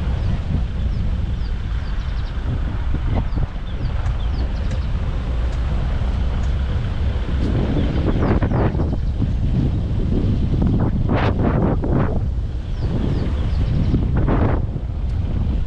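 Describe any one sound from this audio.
A vehicle's engine rumbles steadily at low speed.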